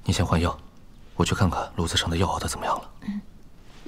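A young man speaks softly and calmly up close.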